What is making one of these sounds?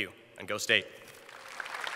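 A young man speaks into a microphone in a large echoing hall.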